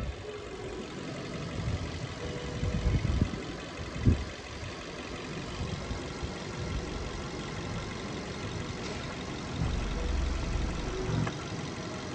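Light knocks and rattles come as a hand handles plastic parts under a car bonnet.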